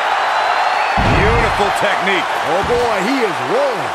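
A heavy body slams onto a wrestling ring mat.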